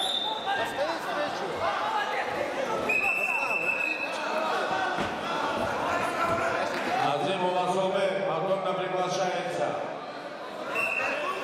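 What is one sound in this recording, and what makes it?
A crowd of men shouts and cheers in a large echoing hall.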